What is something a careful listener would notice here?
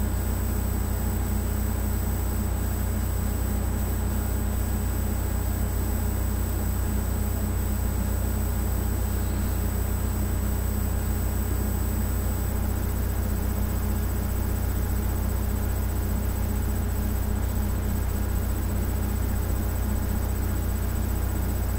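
Music with a heavy bass plays from a small tablet speaker.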